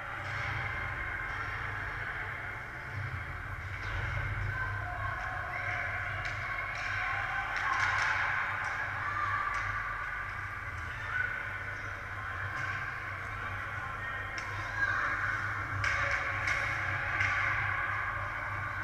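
Skates scrape and carve across ice in a large echoing rink.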